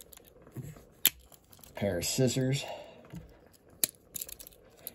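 Metal tools of a pocket knife click as they snap open and shut.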